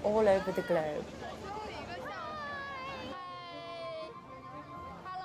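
A young woman shouts and laughs excitedly close by.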